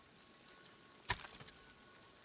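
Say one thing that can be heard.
A bow twangs as an arrow is loosed.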